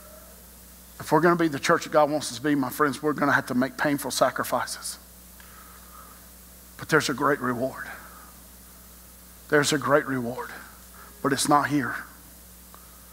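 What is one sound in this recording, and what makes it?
A middle-aged man speaks in pauses through a microphone, in a large room with a slight echo.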